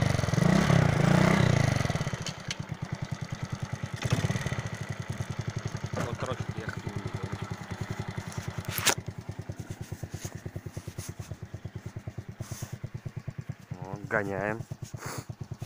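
A motorcycle engine idles nearby with a steady, rapid thumping.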